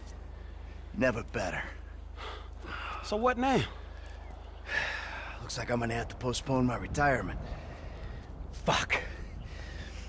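A middle-aged man answers in a tired voice.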